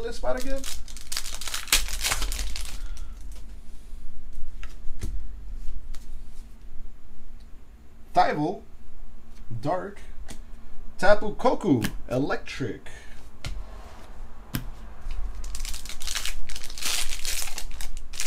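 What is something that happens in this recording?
A foil card pack crinkles and tears as it is opened.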